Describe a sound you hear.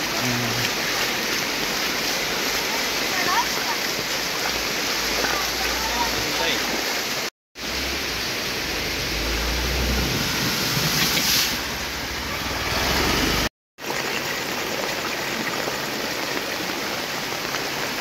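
Muddy floodwater rushes and gurgles steadily.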